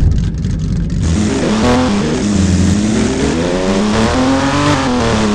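A car engine revs as the car pulls away and speeds up.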